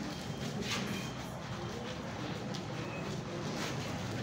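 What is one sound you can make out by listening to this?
Footsteps shuffle across a wooden floor.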